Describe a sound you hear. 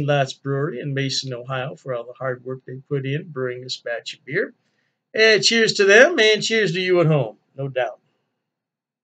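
An older man speaks cheerfully and close to the microphone.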